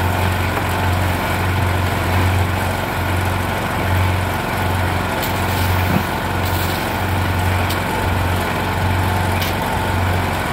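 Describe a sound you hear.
A shovel scrapes into gravel.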